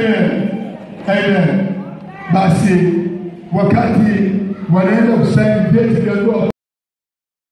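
A man speaks loudly through a microphone over a loudspeaker.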